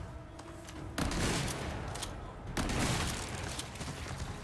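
Gunshots boom loudly twice.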